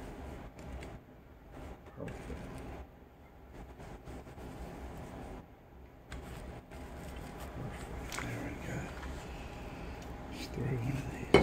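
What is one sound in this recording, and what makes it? Hands handle soft tacos on a plate with quiet rustling.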